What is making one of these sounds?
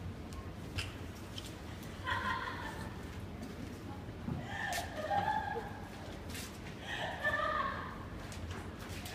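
Dancers' bodies brush and thump softly on a floor.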